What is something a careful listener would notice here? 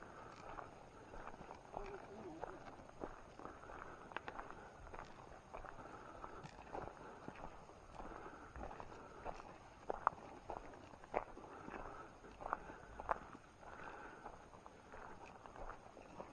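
Footsteps crunch on dry grass and leaves.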